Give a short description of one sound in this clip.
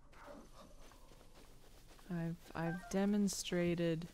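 Footsteps rustle quickly through grass.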